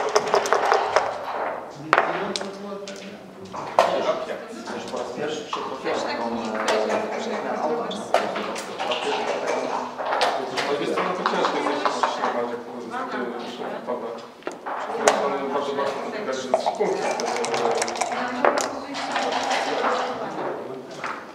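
Dice clatter onto a wooden board.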